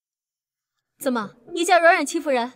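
A young woman speaks with indignation close by.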